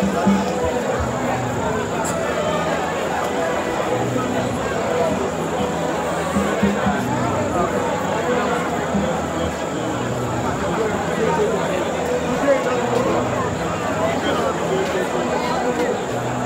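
A large crowd sings together in an open stadium.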